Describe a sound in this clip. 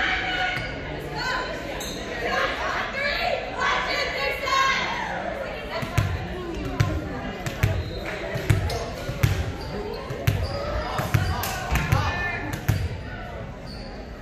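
A volleyball thumps as it is hit and bounces on the floor, echoing in a large hall.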